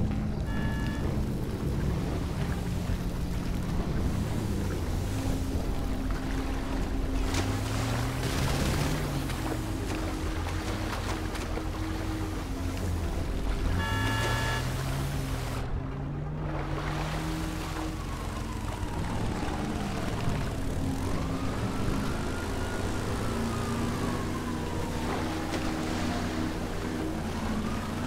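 A boat engine hums and revs.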